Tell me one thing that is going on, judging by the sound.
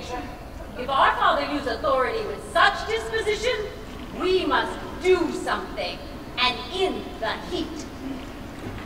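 A young woman answers nearby.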